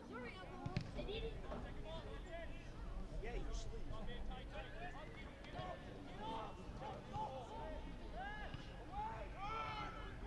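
Young men call out to each other in the distance across an open field.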